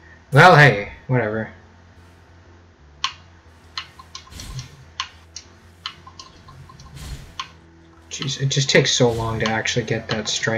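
A sword swishes through the air in quick slashes.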